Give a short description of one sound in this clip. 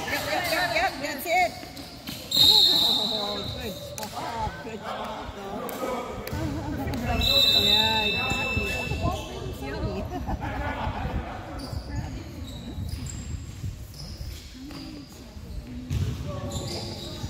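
Young players and onlookers shout and call out in a large echoing gym.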